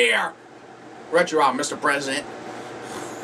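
A man speaks animatedly in a puppet voice close by.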